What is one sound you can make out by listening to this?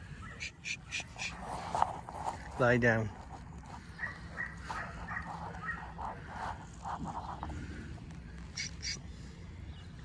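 Sheep hooves patter on dry ground as a flock trots.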